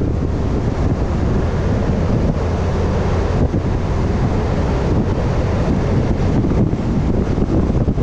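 Wind buffets loudly against a moving vehicle outdoors.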